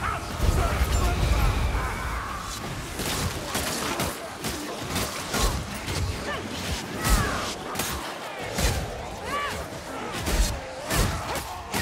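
Creatures shriek and snarl in high, wavering cries.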